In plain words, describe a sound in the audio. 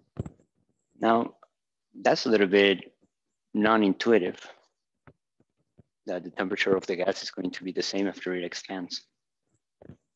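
A young man speaks calmly and explains.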